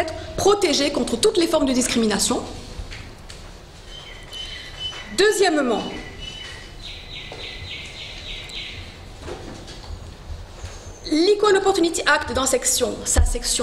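A woman speaks calmly into a nearby microphone, pausing between phrases.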